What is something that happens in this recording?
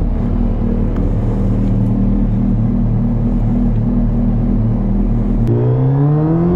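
A motorcycle engine idles with a steady, throbbing rumble.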